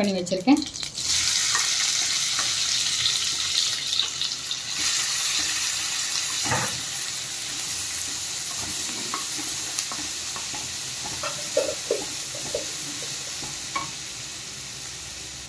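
Chopped onions drop into hot oil and sizzle loudly.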